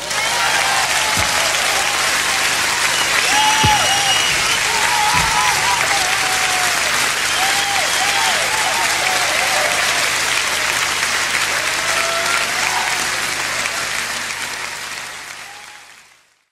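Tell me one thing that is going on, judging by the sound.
A large crowd applauds loudly in a big hall and slowly fades out at the end.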